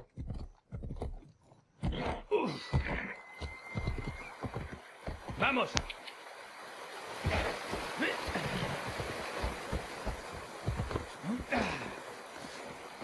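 A horse's hooves clop on the ground.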